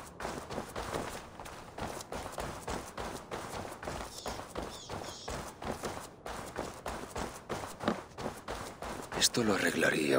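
Footsteps tread steadily on a hard, gritty floor.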